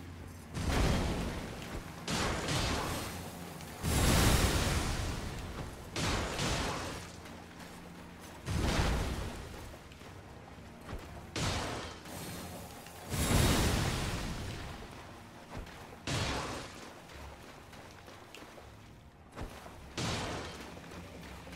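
Water splashes heavily in loud bursts.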